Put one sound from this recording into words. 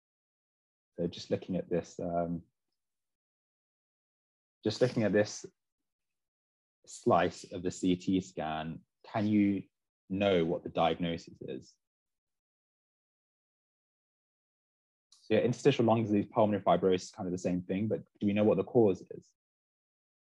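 A young man speaks calmly through an online call, explaining in short bursts with pauses.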